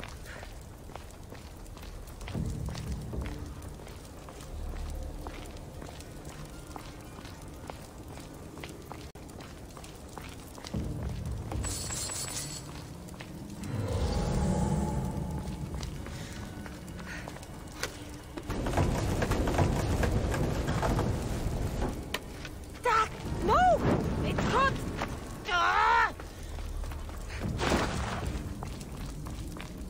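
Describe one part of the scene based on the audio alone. Footsteps walk across a stone floor.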